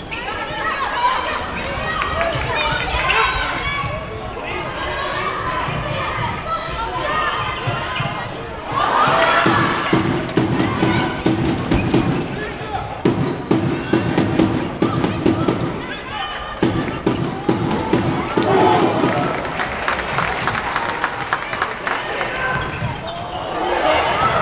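A large crowd chatters and cheers in a big echoing hall.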